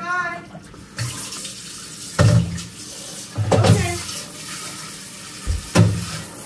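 Water runs from a tap and splashes.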